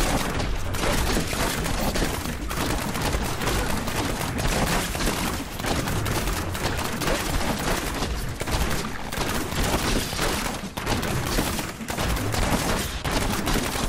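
Game combat effects crackle as rapid volleys of projectiles strike enemies.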